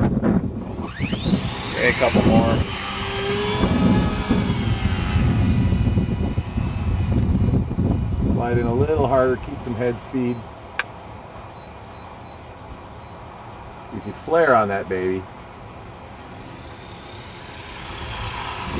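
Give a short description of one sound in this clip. A model helicopter's motor whines, rising sharply in pitch as it spins up, then fading as the helicopter flies off.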